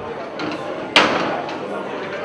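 A metal gate clanks.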